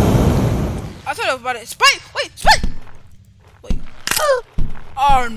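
A young woman cries out with animation close to a headset microphone.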